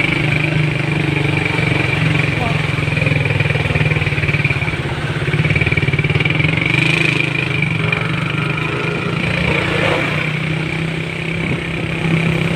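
Motorcycle engines idle and rumble close by in slow traffic.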